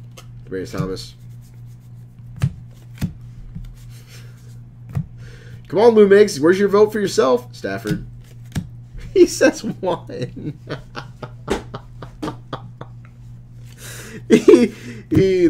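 Trading cards flick and shuffle in a man's hands.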